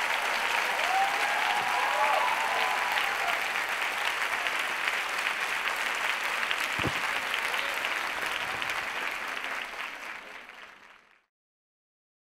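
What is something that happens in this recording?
A large audience applauds loudly in a big hall, then the applause fades away.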